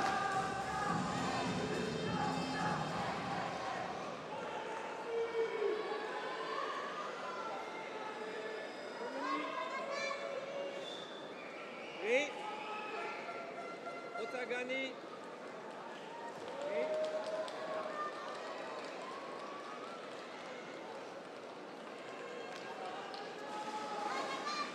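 A large crowd murmurs and calls out in a big echoing hall.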